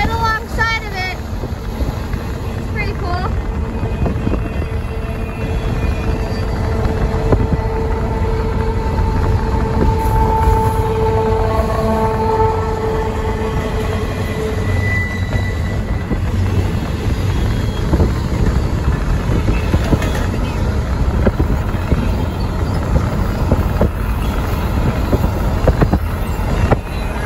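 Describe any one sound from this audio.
A freight train rumbles past close by.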